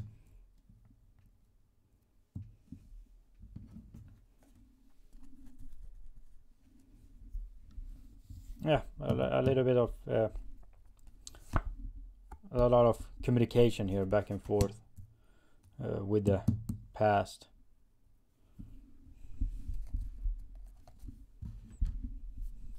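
Cards shuffle and slide softly on a table.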